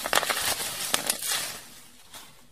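Plastic wrap crinkles loudly as hands squeeze it.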